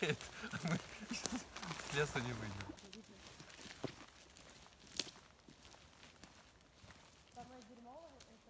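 Footsteps rustle through moss and twigs.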